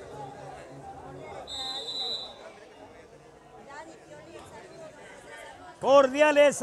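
A crowd of men and boys chatters outdoors.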